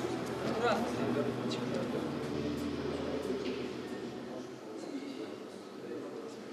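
A crowd of men and women murmurs and chatters in a large hall.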